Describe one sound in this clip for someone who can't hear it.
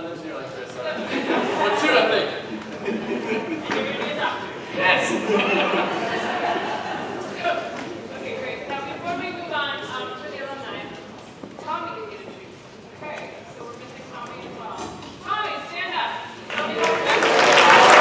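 A big band plays brass and woodwind music in a large echoing hall.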